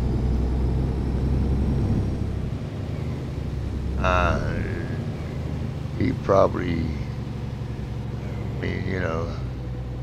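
A truck engine hums steadily.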